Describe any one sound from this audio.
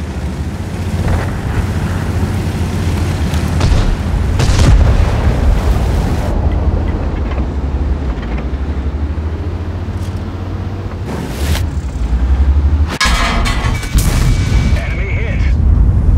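A heavy tank engine rumbles low and steadily.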